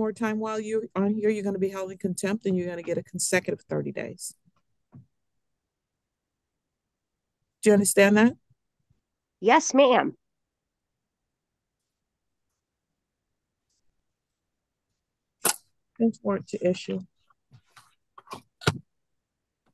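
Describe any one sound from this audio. A woman speaks calmly through an online call, with pauses between her words.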